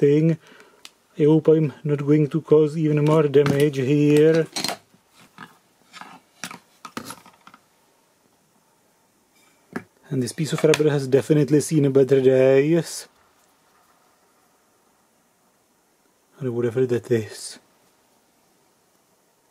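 Metal parts clink and scrape as they are handled.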